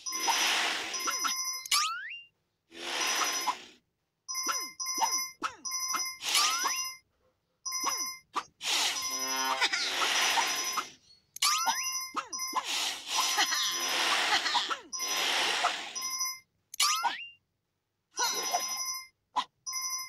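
Whooshing game sound effects sweep by.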